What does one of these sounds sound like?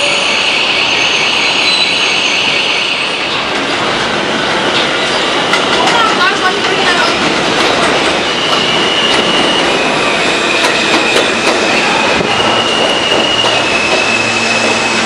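A subway train rolls in on elevated steel tracks.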